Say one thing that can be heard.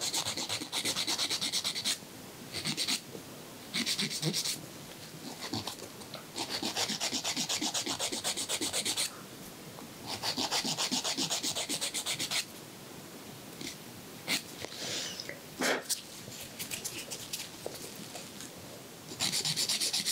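A nail file rasps quickly back and forth over fingernails, close by, in short bursts.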